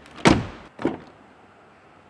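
A car door latch clicks open.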